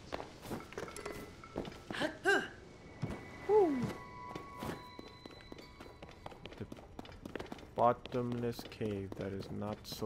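Footsteps crunch steadily on snow and stone.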